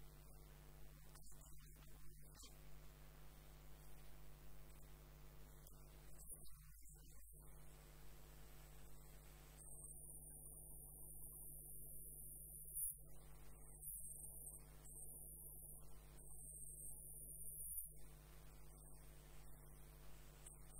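A wood lathe motor hums.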